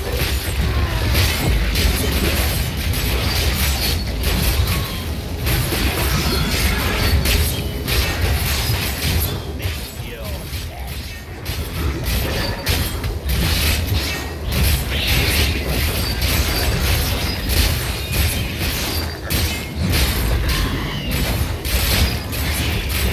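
Monsters grunt and screech as they are struck.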